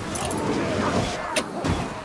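A blade slashes through the air.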